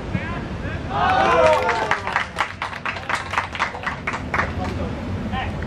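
Young men cheer and shout after a goal.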